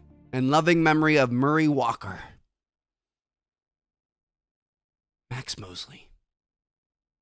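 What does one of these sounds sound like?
A young man speaks briefly and softly into a close microphone.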